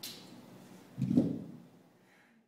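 Dumbbells thud onto a hard floor.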